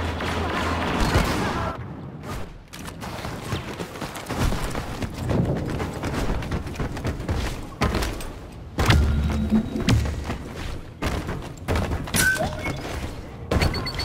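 Blaster shots fire in sharp bursts.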